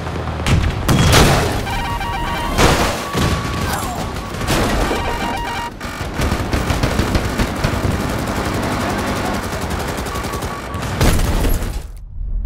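Explosions boom loudly nearby.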